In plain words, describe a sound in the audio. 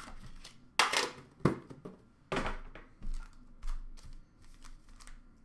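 Cardboard boxes knock and slide as they are picked up.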